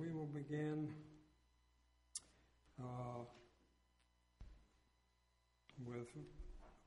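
An elderly man speaks slowly and calmly into a microphone, heard in a room with some echo.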